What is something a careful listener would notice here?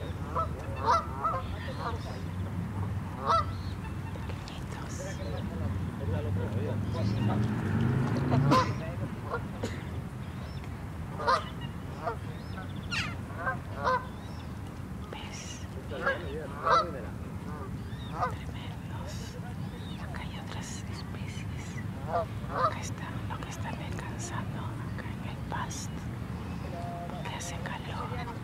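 Geese honk and call now and then across open water.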